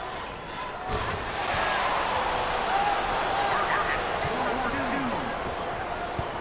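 A crowd cheers loudly, then settles.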